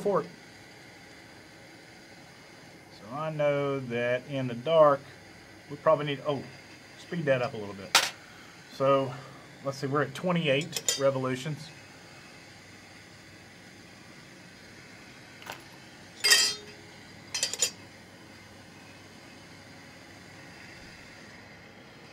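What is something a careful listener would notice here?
A gas torch flame hisses steadily.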